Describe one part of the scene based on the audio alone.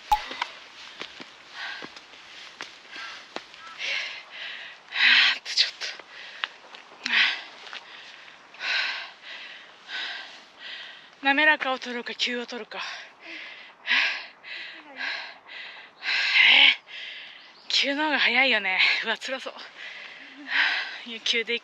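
A woman breathes heavily and pants close by.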